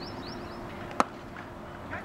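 A cricket bat sharply strikes a ball in the distance.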